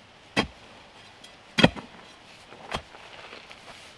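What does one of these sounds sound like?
A stick thuds and scrapes into loose soil.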